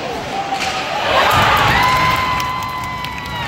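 A crowd in an echoing arena cheers loudly.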